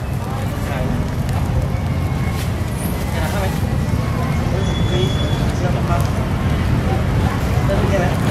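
Fish sizzle and crackle over hot charcoal.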